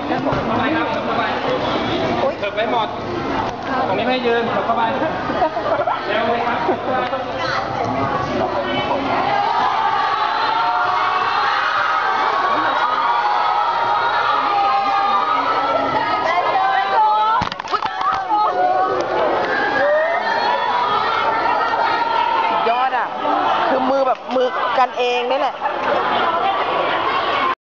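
A crowd of young women chatter and scream excitedly close by.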